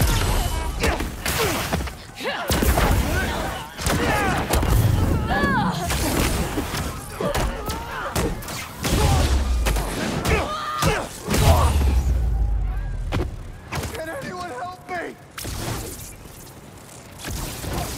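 Electric zaps crackle.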